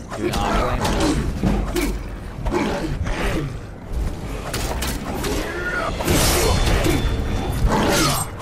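A large creature growls and roars.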